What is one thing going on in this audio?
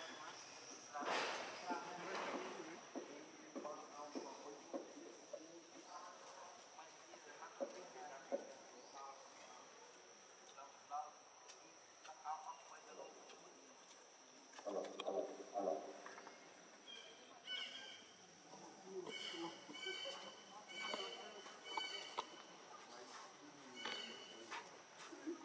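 A baby monkey squeaks and whimpers close by.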